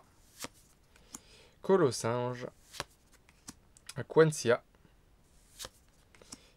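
Trading cards rustle and click as a hand shuffles them.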